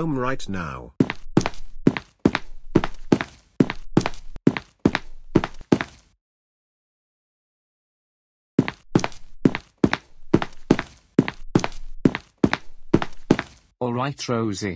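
Footsteps tap quickly on a hard floor.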